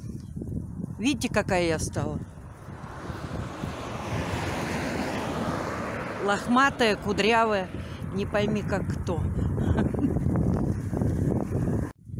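An elderly woman talks with animation close to the microphone.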